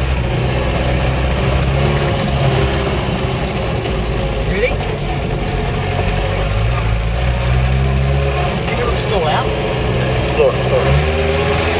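The car body rattles and creaks over bumps.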